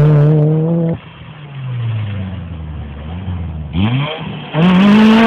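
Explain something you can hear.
A second rally car engine roars and revs as it approaches at speed.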